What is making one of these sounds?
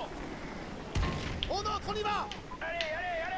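An explosion booms as a door is blasted open.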